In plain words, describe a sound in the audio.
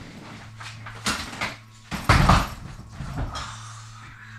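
Suitcases thump down onto a floor.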